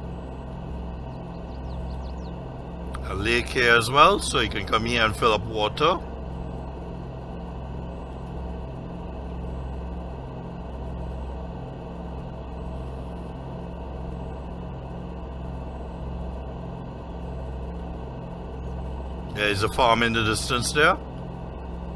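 A truck engine hums steadily as it drives along a road.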